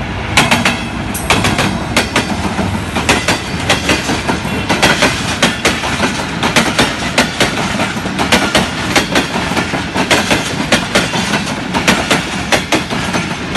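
A train's diesel engine rumbles steadily.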